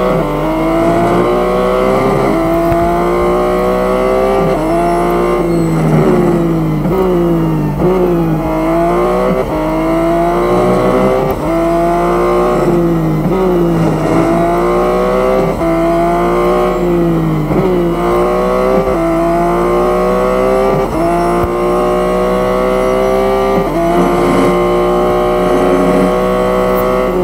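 A racing car engine roars, its pitch climbing through the gears and dropping when braking.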